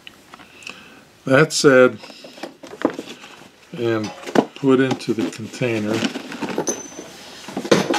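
A metal object clicks and knocks as it is handled.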